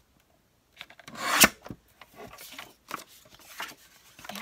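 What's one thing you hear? A paper trimmer blade slides down and cuts through paper with a sharp snap.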